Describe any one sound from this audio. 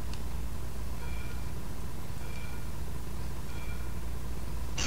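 Short game beeps count down.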